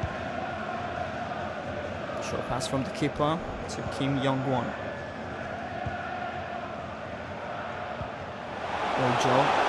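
A large stadium crowd roars steadily, swelling louder near the end.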